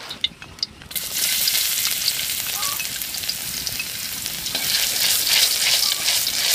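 Oil sizzles and crackles in a hot wok.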